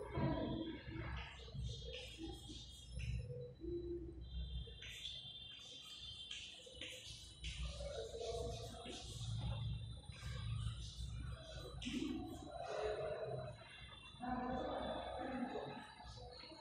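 A woman speaks steadily, as if teaching.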